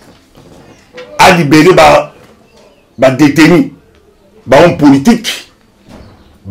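A middle-aged man speaks forcefully and with animation into a close microphone, in short bursts with pauses.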